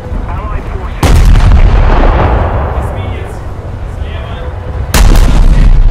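Heavy naval guns fire with loud booming blasts.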